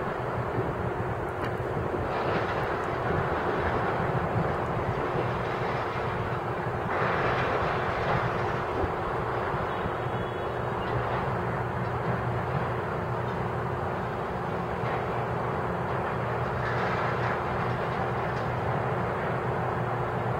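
A diesel material handler's engine runs in the distance.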